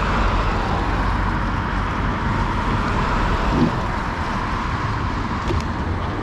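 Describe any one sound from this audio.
A car drives past on a wet road, tyres hissing.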